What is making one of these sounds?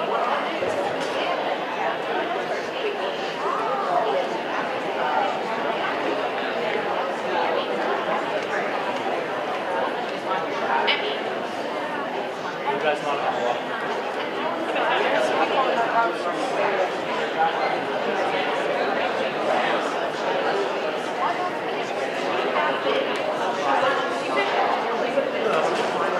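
An audience chatters in a large echoing hall.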